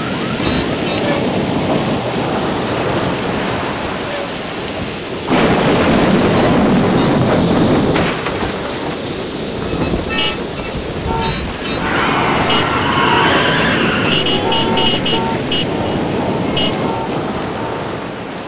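A coat flaps loudly in the wind.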